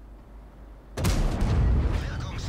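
A tank cannon fires with a sharp boom.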